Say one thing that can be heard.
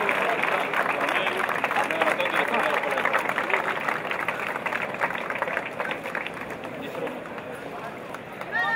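Men and women murmur and chat nearby.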